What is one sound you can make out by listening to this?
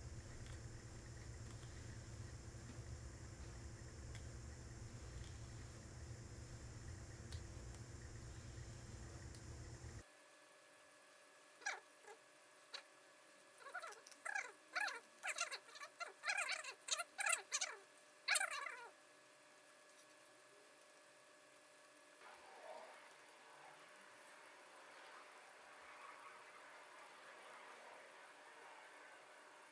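Cloth rustles softly as stitches are pulled loose.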